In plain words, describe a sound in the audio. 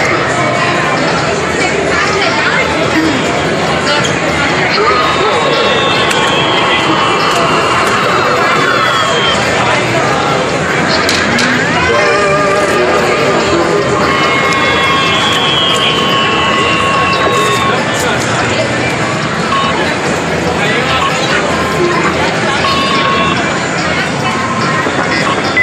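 An arcade game machine plays loud electronic music and beeping tones.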